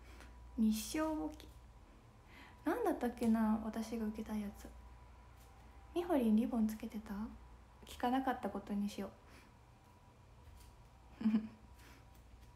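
A young woman talks softly and close to a microphone, in short bursts with pauses.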